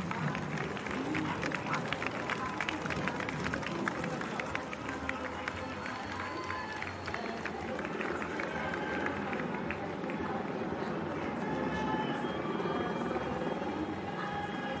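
Running shoes patter quickly on pavement.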